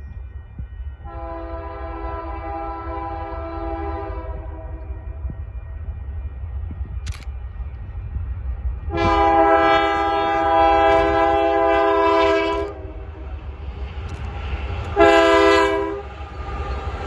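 A diesel freight locomotive sounds its air horn in long blasts as it approaches.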